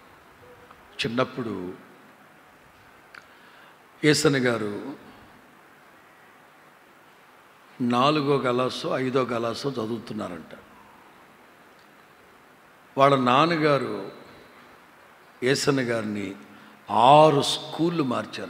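A middle-aged man preaches with emphasis into a microphone, in short bursts with pauses.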